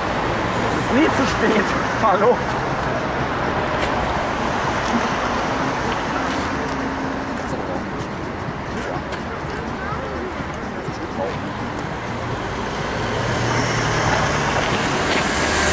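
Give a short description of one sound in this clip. Bicycle tyres whir past close by.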